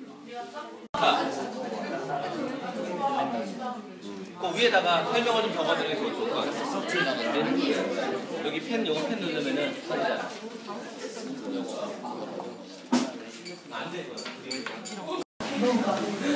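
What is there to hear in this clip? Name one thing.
Young people chatter in the background.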